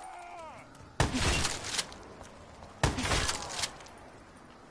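Gunfire rattles in two loud bursts.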